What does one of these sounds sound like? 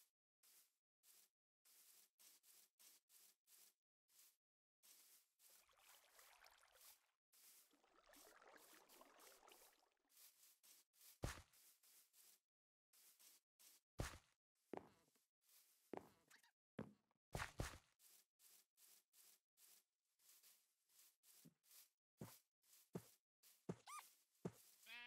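Footsteps crunch steadily over grass and earth.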